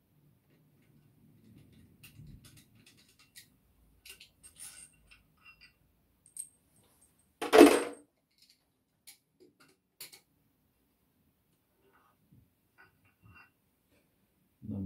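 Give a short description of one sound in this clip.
Metal engine parts clink and rattle.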